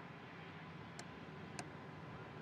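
Cockpit switches click sharply.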